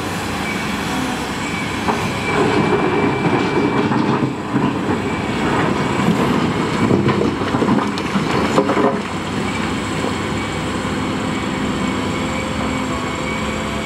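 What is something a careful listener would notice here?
Rocks thud into a dump truck bed.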